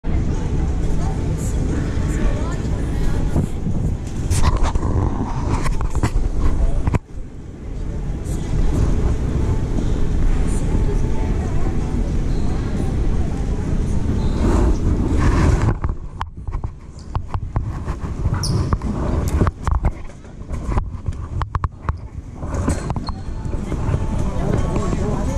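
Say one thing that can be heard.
Many people murmur and talk in a large echoing hall.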